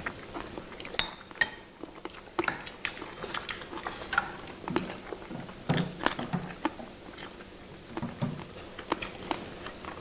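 Chopsticks click against plates and bowls.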